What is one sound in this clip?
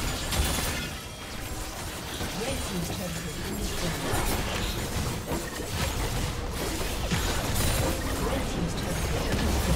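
Magic blasts crackle and boom in a busy fight.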